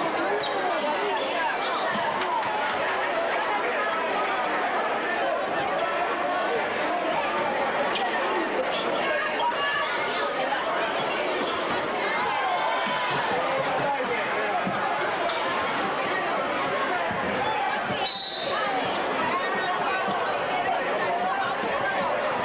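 A large crowd cheers and chatters loudly in an echoing hall.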